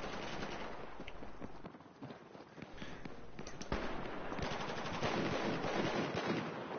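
Gunshots crack in quick bursts, close by.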